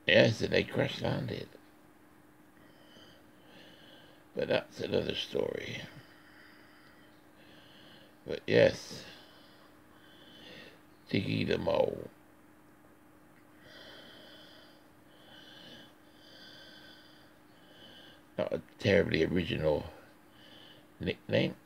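A pencil scratches softly across paper in short strokes.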